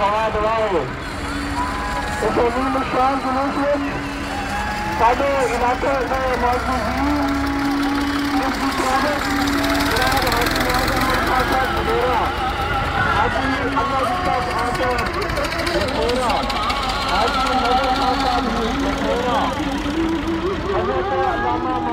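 A crowd of men chants and shouts loudly outdoors.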